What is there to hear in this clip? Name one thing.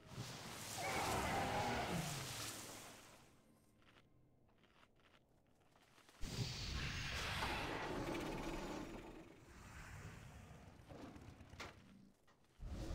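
Fantasy battle sounds of spells and blows crash and roar in loud bursts.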